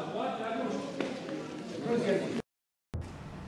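An elderly man speaks calmly to a group in a large echoing hall.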